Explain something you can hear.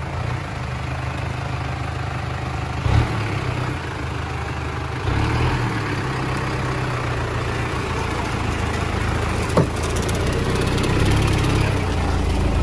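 Mud squelches under spinning tyres.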